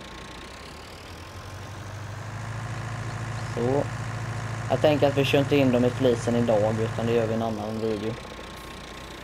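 A tractor engine rumbles and revs up, then settles.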